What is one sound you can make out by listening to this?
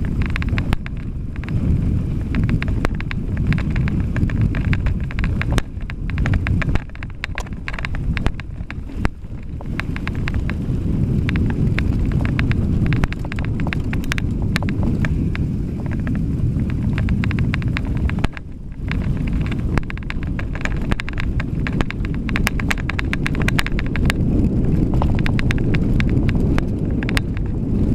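A mountain bike rattles and clatters over a bumpy dirt trail.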